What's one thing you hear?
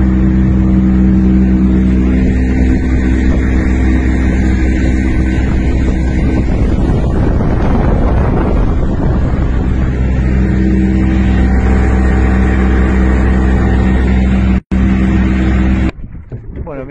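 A boat engine drones loudly and steadily.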